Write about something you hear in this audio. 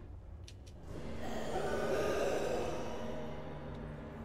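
A magic spell bursts with a roaring, crackling whoosh.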